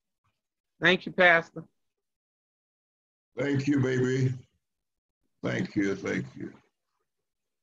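An elderly man speaks calmly in short phrases over an online call.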